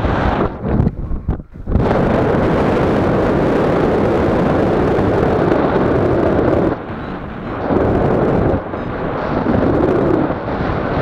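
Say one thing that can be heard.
Wind rushes loudly and buffets past, outdoors in flight.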